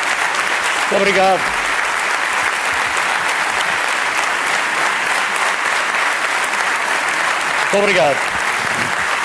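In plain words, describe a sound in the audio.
A man in the crowd shouts a cheer.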